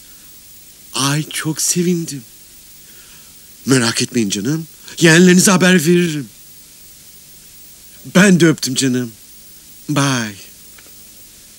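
A middle-aged man talks loudly and excitedly into a phone nearby.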